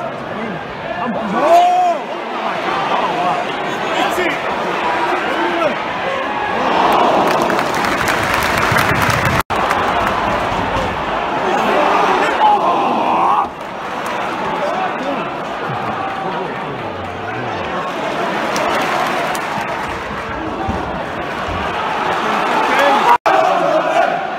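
A large stadium crowd roars and chants in the open air.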